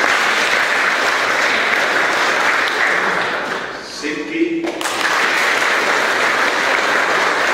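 A group of teenage boys laughs and cheers loudly nearby.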